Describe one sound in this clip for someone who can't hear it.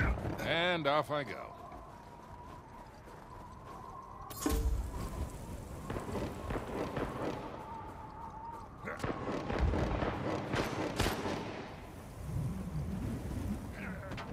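Footsteps crunch quickly through snow.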